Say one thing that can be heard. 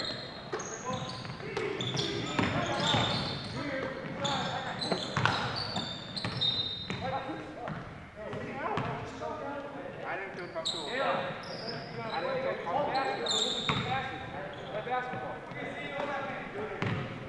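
Sneakers squeak sharply on a hardwood floor in an echoing gym.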